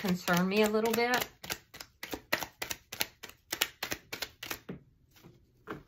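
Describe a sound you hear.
Playing cards riffle and snap quickly as a deck is shuffled.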